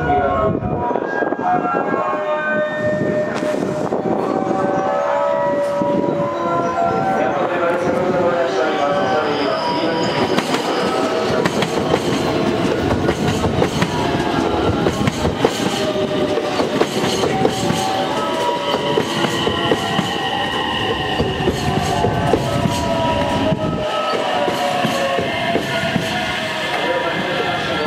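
A train approaches and rolls past close by.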